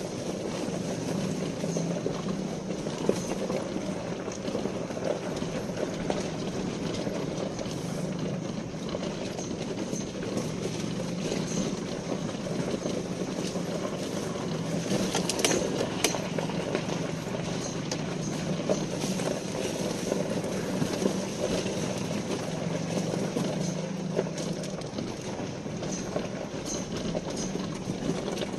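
A small motorbike engine hums steadily nearby.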